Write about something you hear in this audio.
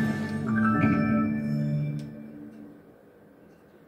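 A short electronic chime plays through a loudspeaker and fades away.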